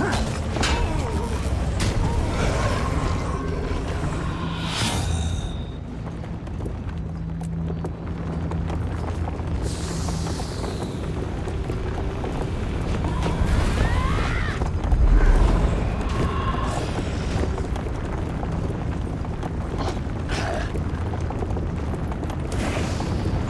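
Spell effects whoosh and crackle during combat.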